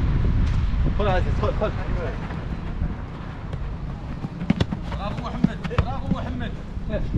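Men shout to each other outdoors during a football game.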